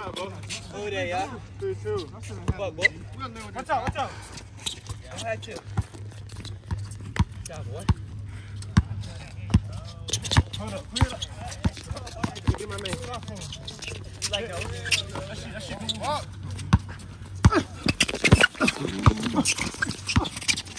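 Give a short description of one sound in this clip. Young men call out and talk nearby outdoors.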